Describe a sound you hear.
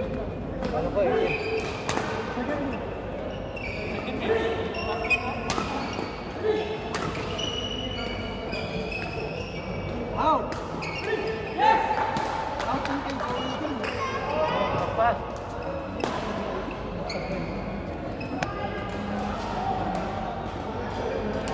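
Men call out and talk during play in an echoing hall.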